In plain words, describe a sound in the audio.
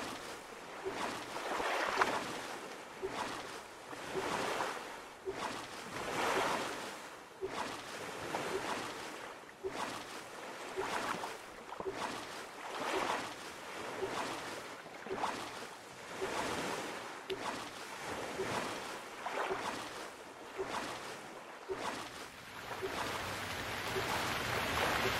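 Small waves lap gently against an inflatable boat.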